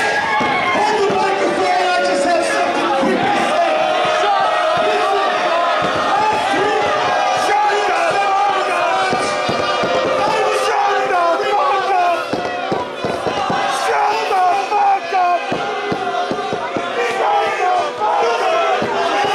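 A middle-aged man speaks loudly through a microphone over loudspeakers in an echoing hall.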